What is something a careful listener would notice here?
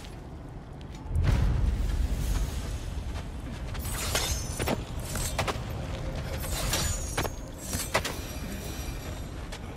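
Heavy footsteps crunch through snow.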